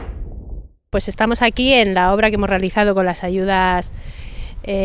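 A woman speaks calmly into a microphone close by.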